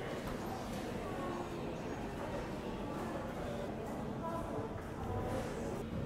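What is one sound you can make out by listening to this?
Many people chatter in a room with echoes.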